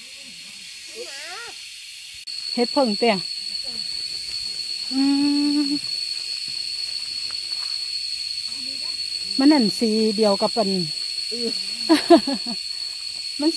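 A woman talks nearby with animation.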